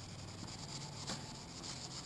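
A sponge scrubs against a plastic surface.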